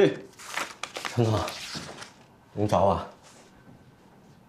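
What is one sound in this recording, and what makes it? A man answers calmly, close by.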